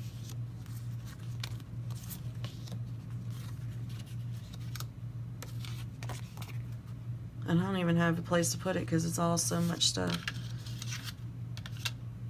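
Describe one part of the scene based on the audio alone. Sheets of paper rustle and slide against each other close by.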